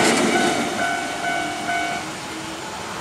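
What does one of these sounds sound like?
A level crossing bell rings steadily.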